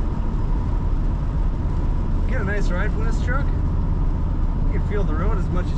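An old truck engine drones steadily.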